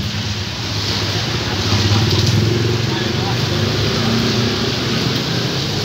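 A motor scooter rides past on a wet road.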